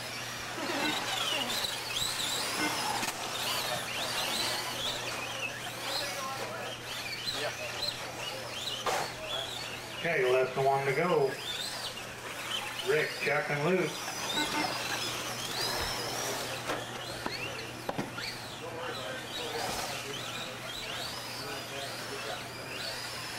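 A small electric motor whines as a toy car races over dirt.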